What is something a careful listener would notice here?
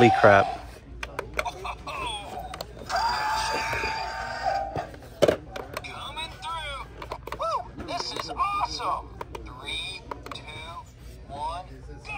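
A toy car plays a recorded voice and sound effects through a small tinny speaker.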